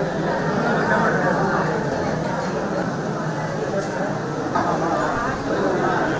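A crowd of men and women chatters all around in a dense, lively murmur.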